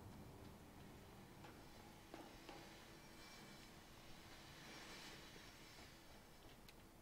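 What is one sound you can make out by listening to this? Footsteps clank on metal stairs and grating.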